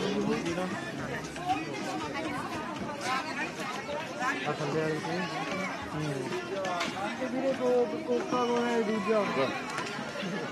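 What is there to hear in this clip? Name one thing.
A woman talks loudly and with animation nearby.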